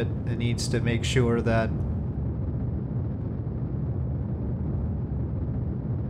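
A rocket engine rumbles low and steadily.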